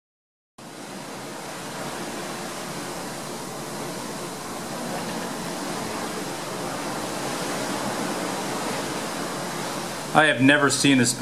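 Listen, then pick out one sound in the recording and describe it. A radio hisses with static while being tuned.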